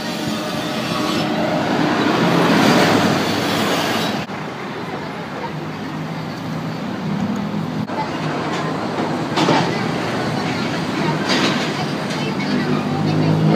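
Traffic rumbles steadily along a road outdoors.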